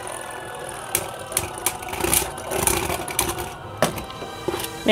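Spinning tops clash and clatter against each other.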